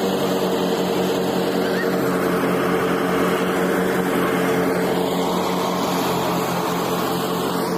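A tractor engine drones steadily nearby.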